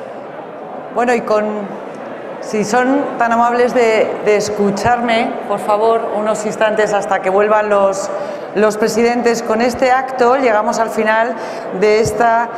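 A woman speaks calmly into a microphone over loudspeakers.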